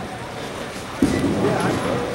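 A bowling ball thuds onto a wooden lane.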